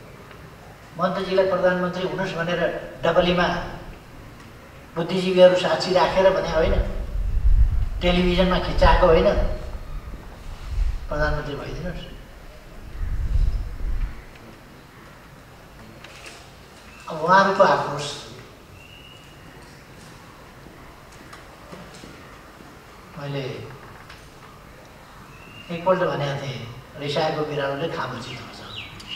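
An elderly man speaks calmly into a microphone, pausing often.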